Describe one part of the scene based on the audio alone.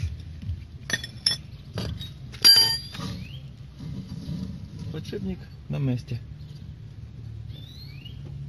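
Metal parts clink as a brake caliper is handled.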